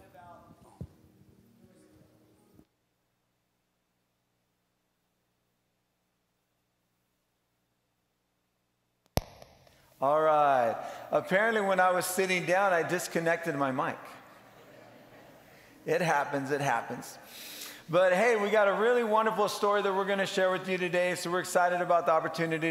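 A man speaks calmly into a microphone, heard over loudspeakers in a large hall.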